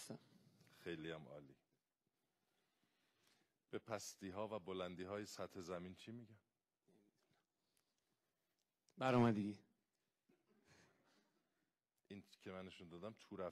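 A middle-aged man talks in a lively way into a microphone, stopping now and then.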